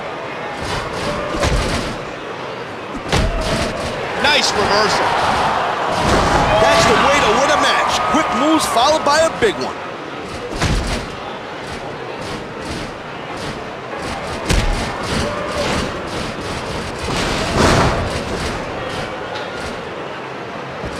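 A large crowd cheers and roars throughout in a big echoing arena.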